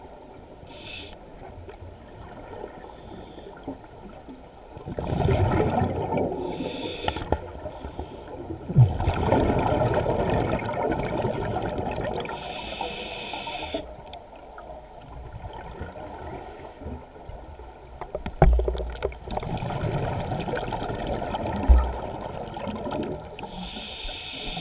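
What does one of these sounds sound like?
A scuba diver underwater exhales through a regulator in bursts of bubbles.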